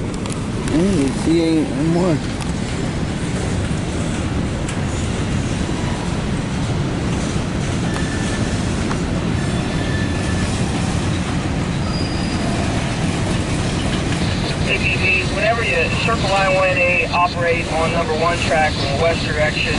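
A freight train rumbles and clatters past nearby.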